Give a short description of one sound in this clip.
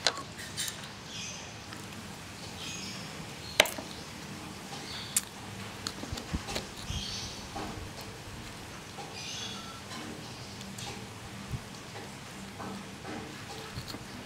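A knife cuts through the rind of a spiky fruit with soft scraping sounds.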